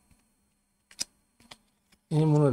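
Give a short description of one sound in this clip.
Trading cards slide and tap against each other as they are handled.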